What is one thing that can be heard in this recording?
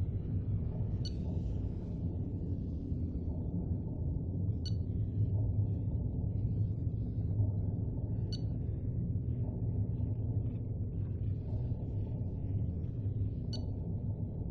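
A short electronic chime sounds several times.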